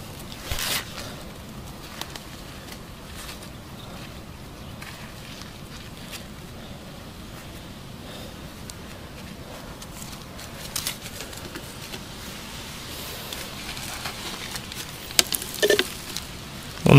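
Leaves rustle as plants brush past close by.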